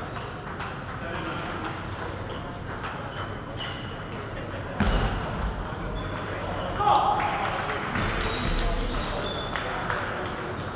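A ping-pong ball clicks back and forth off paddles and a table in a large echoing hall.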